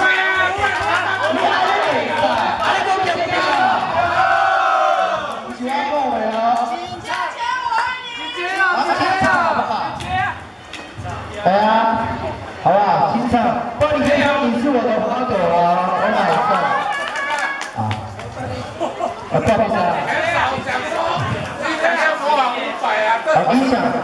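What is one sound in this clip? A man sings loudly through a microphone and loudspeaker.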